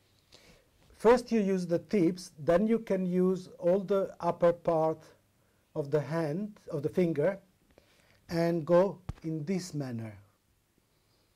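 A middle-aged man speaks calmly and clearly nearby.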